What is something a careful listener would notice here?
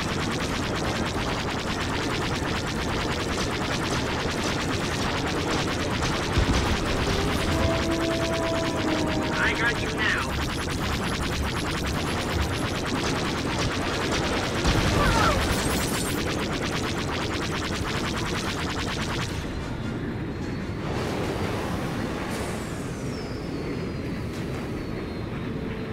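Spaceship engines roar steadily.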